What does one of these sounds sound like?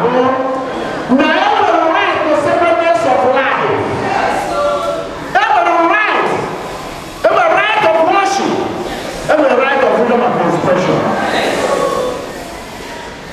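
A man speaks slowly and loudly through a loudspeaker, echoing.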